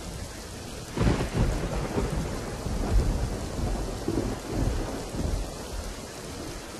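Thunder rumbles loudly and rolls away.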